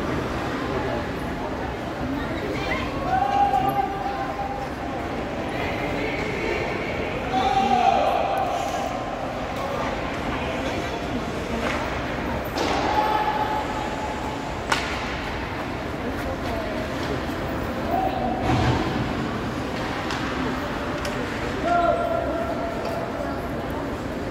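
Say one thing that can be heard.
Ice skates scrape and swish across an ice rink.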